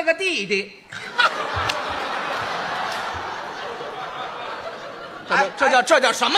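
A large audience laughs and applauds.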